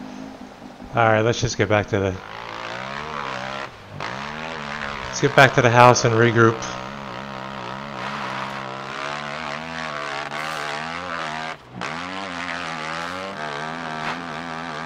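A motorcycle engine revs and drones as the bike rides along.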